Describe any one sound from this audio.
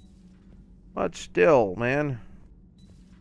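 A man speaks briefly and expressively into a microphone, his voice rising and falling.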